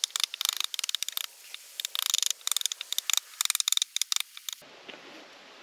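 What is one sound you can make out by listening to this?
A knife scrapes and shaves wood in quick strokes.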